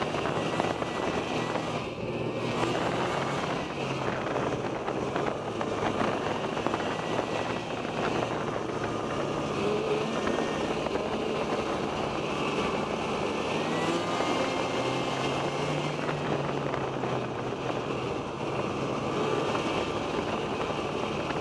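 A snowmobile engine drones steadily up close.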